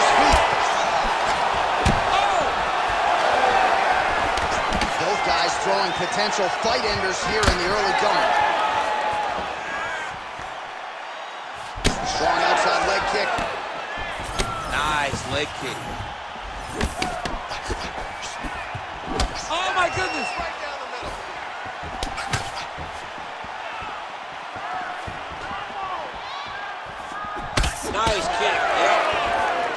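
A crowd cheers and roars in a large arena.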